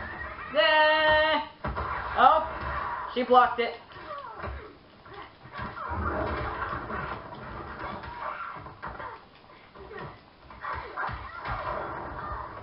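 Punches and kicks thud and smack in a video game fight.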